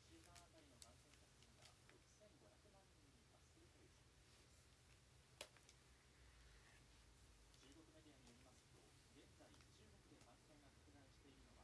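A hair straightener clicks and rustles through hair.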